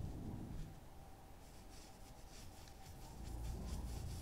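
A hand rubs softly across paper.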